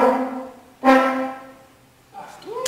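A French horn plays a sustained final note.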